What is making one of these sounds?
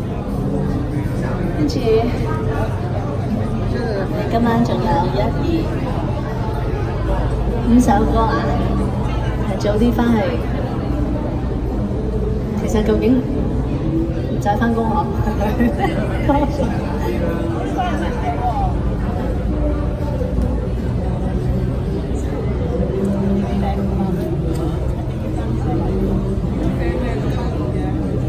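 A young woman sings into a microphone through loudspeakers.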